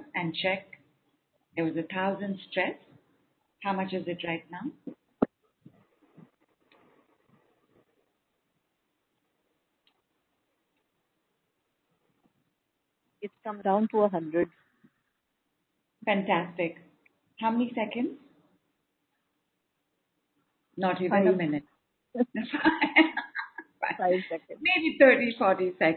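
A woman speaks calmly into a microphone, close up, in short bursts with pauses.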